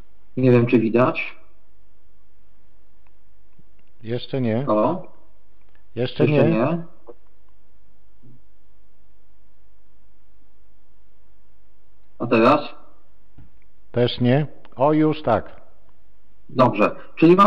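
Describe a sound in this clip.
A man speaks calmly into a microphone in a quiet room, in short phrases with pauses.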